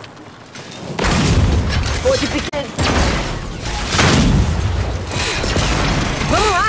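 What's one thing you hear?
Heavy gunfire rattles in loud bursts.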